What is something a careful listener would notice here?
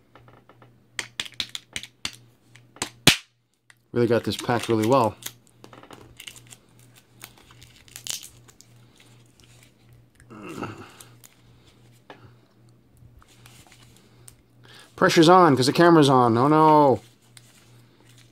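Plastic wrap crinkles and rustles as fingers peel it.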